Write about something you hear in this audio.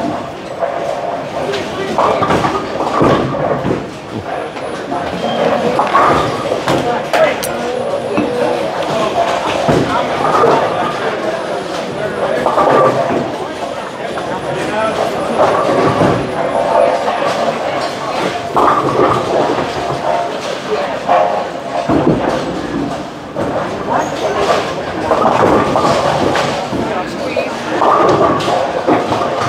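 Bowling balls roll down wooden lanes with a low rumble.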